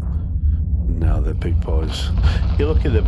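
Spaceship guns and missiles fire and explode in a video game.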